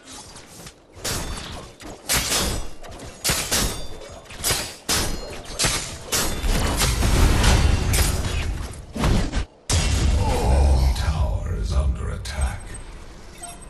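Blows, blasts and weapon impacts crash in a fast video game fight.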